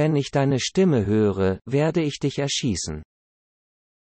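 A man speaks in a low, threatening voice.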